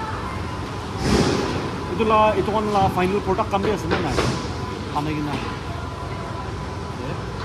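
A young man speaks with animation up close.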